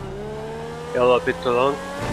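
Tyres screech on tarmac as a car corners.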